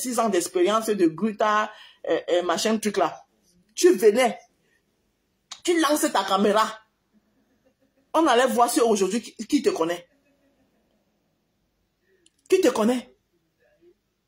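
A woman talks with animation, close by, in short bursts.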